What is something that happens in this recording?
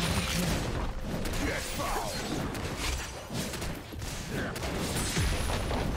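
Game spell effects burst and clash.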